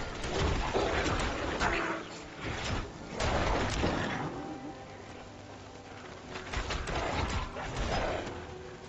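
Weapons slash and strike monsters in bursts of combat.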